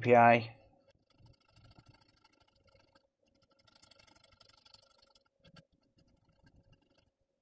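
A brush scrubs a circuit board with liquid.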